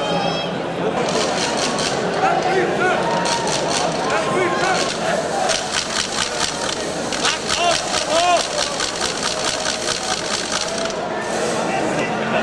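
Men chant and shout loudly in a crowd.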